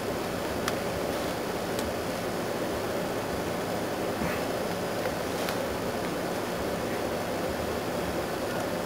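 A plastic pot knocks and scrapes as it is turned over.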